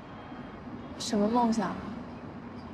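A young woman asks a short question calmly.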